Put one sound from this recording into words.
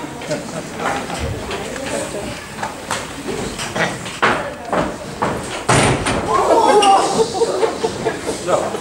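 Feet stomp and shuffle on a wooden stage.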